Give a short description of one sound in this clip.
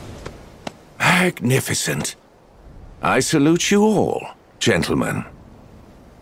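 A man speaks theatrically and grandly.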